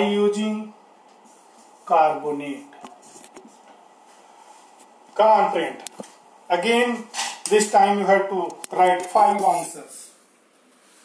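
A man speaks in short phrases, as if teaching, close by.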